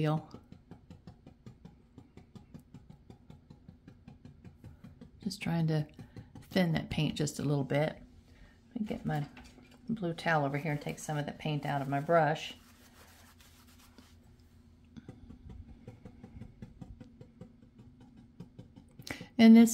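A brush scrubs softly across paper.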